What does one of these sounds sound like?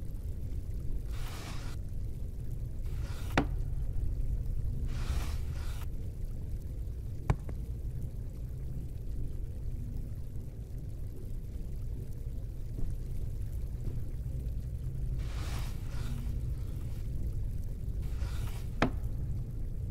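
A drawer slides open and shut with a soft knock.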